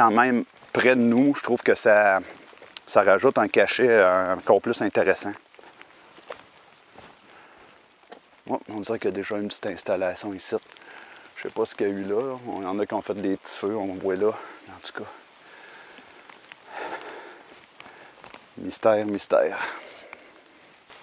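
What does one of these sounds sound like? A middle-aged man talks calmly, close by.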